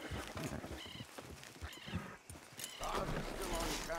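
A horse's hooves clop on the ground.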